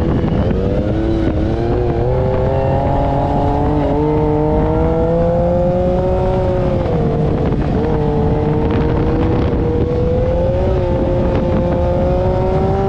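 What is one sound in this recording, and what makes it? An engine roars steadily close by, rising and falling in pitch.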